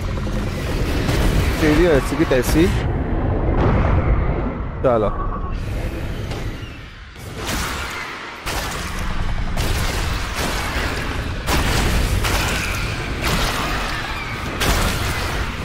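A dragon breathes roaring bursts of fire.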